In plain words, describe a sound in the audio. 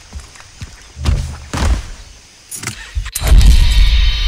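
A quad bike engine idles and revs nearby.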